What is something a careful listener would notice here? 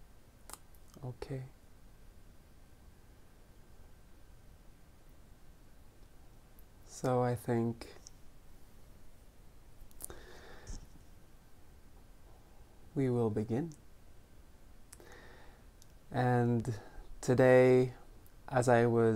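A man speaks calmly and close up, with pauses between phrases.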